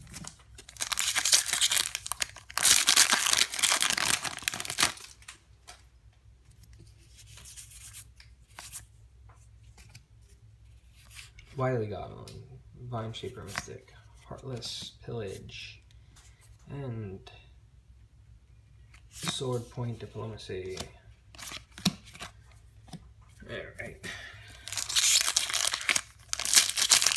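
A foil wrapper crinkles and rustles close by.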